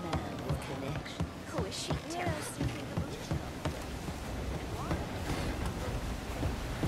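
Footsteps run quickly across a wooden deck.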